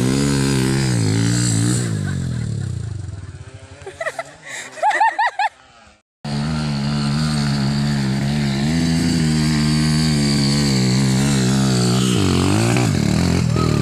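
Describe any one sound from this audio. A dirt bike engine revs and roars as the motorcycle climbs a hill.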